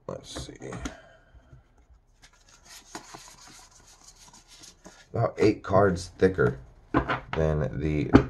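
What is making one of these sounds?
Playing cards rustle and slide as they are shuffled by hand.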